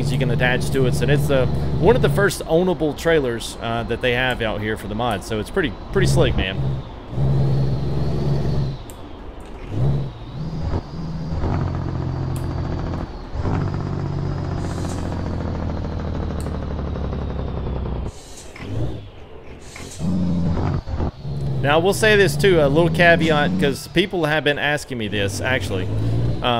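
A truck engine hums steadily, shifting pitch as gears change.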